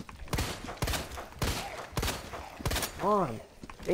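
A creature groans and growls.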